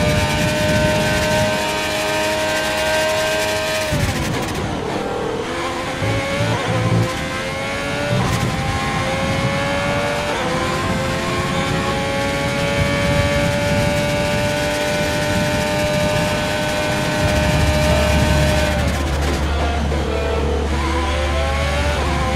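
A racing car engine screams at high revs, dropping sharply as it brakes and climbing again through the gears.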